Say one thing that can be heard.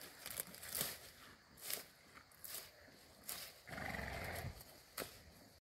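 A cow tears and munches leafy stalks close by.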